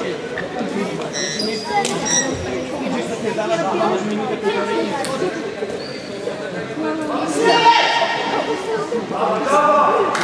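Shoes squeak sharply on a hard floor.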